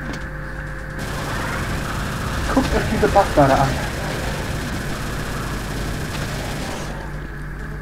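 A plasma gun fires rapid bursts with fizzing blasts.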